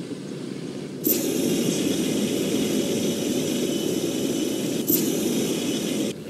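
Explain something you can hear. A flamethrower roars with a steady rushing hiss.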